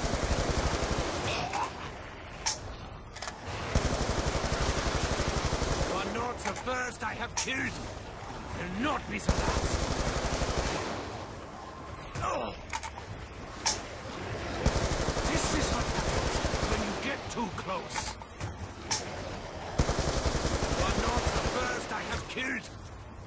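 A rapid automatic gun fires in loud bursts.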